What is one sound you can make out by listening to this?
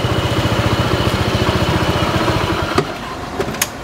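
A scooter engine idles with a rapid rumble, then cuts off.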